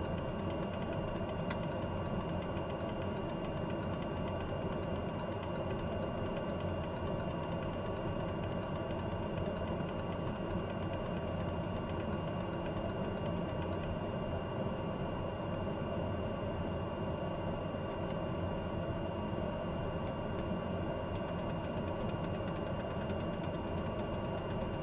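A turboprop engine idles with a steady whine.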